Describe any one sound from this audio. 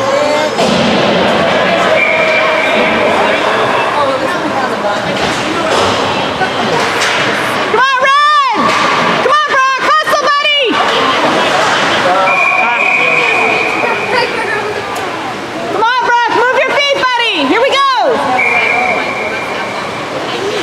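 Ice skates scrape across the ice in an echoing arena.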